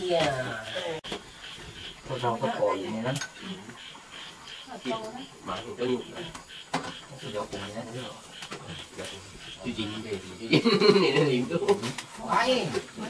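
Spoons and chopsticks clink against bowls.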